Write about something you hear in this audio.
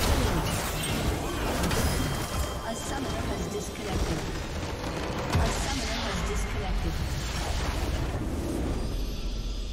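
Game spell effects blast and crackle in a busy battle.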